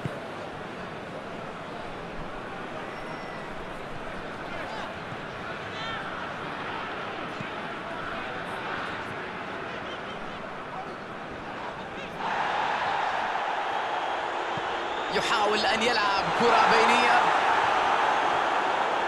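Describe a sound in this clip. A large stadium crowd roars steadily and swells louder.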